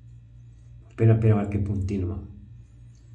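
A man speaks briefly up close.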